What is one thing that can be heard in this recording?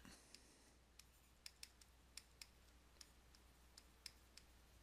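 A stylus taps and scratches lightly on a writing tablet.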